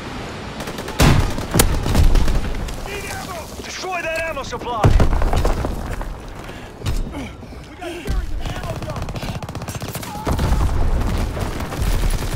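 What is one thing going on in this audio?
A gun fires bursts of shots.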